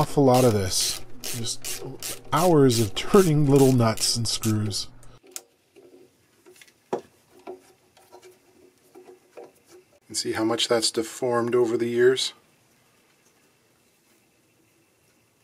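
A small wrench clicks and scrapes against metal hooks.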